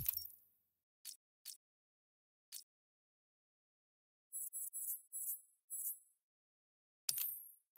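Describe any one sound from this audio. Short menu clicks tick several times.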